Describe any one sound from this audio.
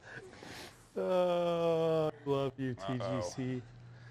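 A man exclaims loudly and excitedly nearby.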